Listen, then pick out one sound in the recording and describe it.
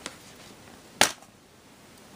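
A plastic DVD case snaps open.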